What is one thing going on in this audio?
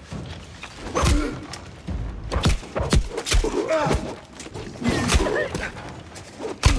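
Sword blows strike and clang with sharp hits.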